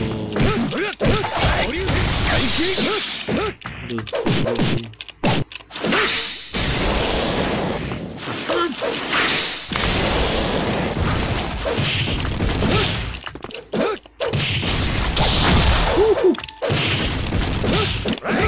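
Punches and kicks land with sharp thuds.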